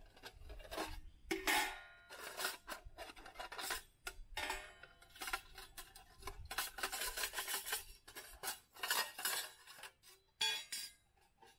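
Small objects are set down with soft knocks on wood.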